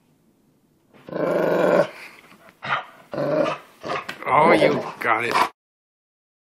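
A dog growls loudly while tugging.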